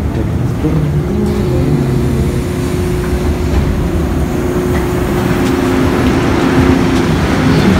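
Footsteps shuffle as a crowd files off a train.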